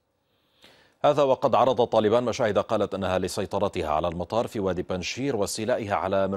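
A man speaks steadily and clearly into a microphone, like a news presenter.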